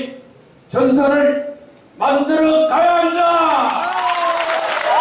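An elderly man shouts forcefully through a loudspeaker in an echoing hall.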